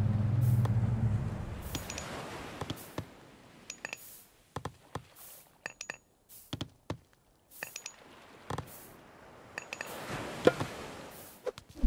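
Waves wash gently on a shore.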